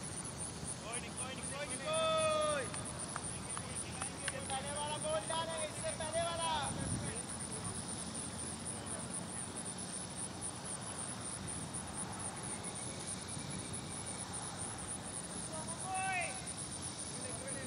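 Men call out to each other from across an open field.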